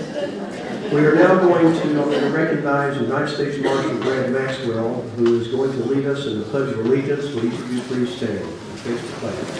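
An elderly man speaks calmly through a microphone and loudspeakers.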